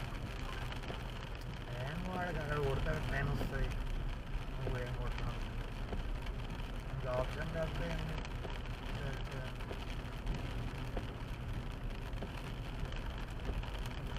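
Windshield wipers thump across the glass.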